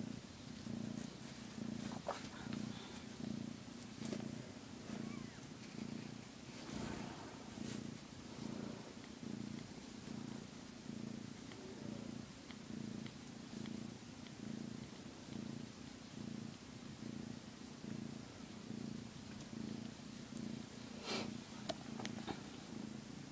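A cat purrs loudly and steadily close by.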